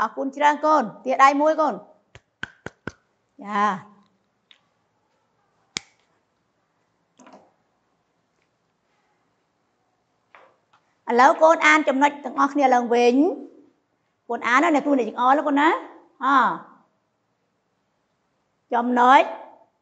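A woman speaks clearly and calmly into a clip-on microphone, in short phrases with pauses.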